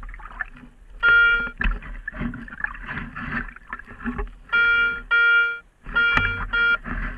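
A metal detector beeps in short, steady bursts.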